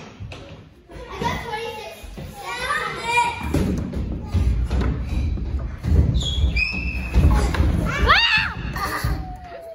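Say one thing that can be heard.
A young girl talks and squeals excitedly nearby.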